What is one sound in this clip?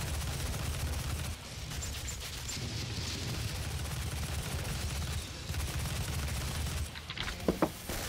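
Gunshots fire rapidly in loud bursts.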